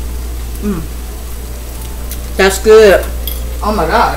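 A spoon scrapes food onto a plate.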